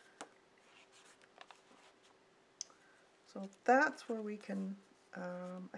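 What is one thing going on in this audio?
A sheet of thin paper rustles as it is lifted and slid away.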